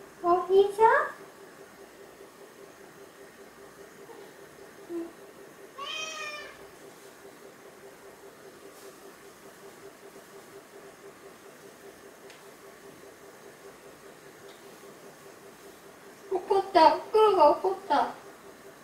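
A cat meows several times close by.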